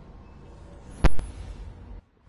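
A sharp electronic tone sounds once.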